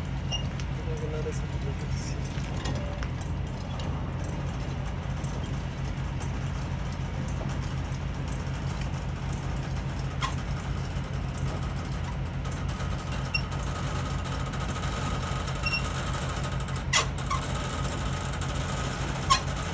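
A hand crank turns a trailer's landing gear with faint metallic clicks and rattles.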